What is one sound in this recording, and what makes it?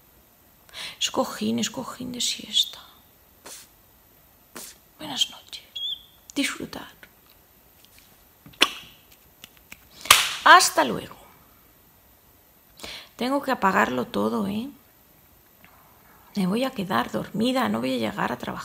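A woman speaks calmly and slowly, close to a microphone.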